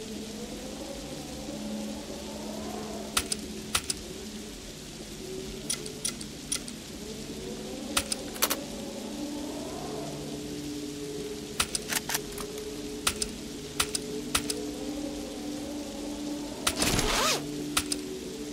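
Menu buttons click sharply, again and again.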